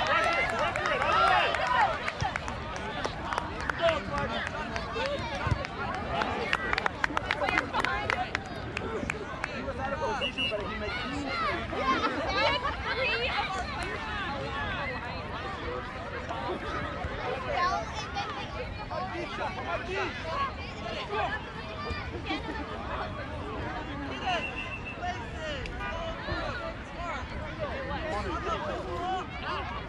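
A crowd of adults and children chatters and calls out nearby outdoors.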